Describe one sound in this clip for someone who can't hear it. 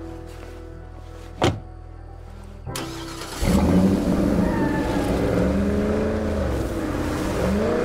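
A truck engine rumbles steadily, then grows louder as the truck drives off.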